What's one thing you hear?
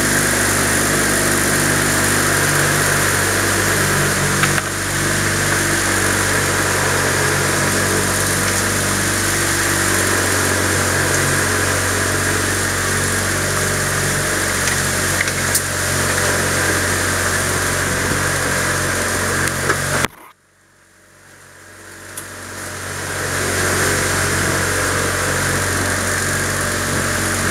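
A boat motor hums steadily, cuts out briefly and then slowly builds up again.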